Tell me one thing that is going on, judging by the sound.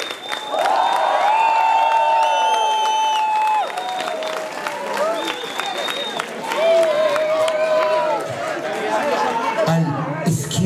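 A crowd cheers and screams loudly in a large hall.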